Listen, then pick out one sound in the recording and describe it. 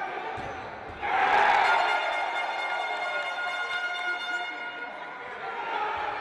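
A crowd roars loudly after a goal.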